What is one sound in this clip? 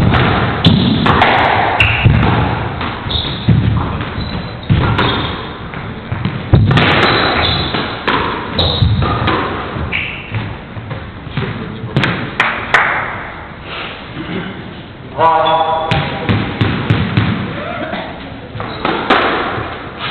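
Sneakers squeak on the court floor as players dash.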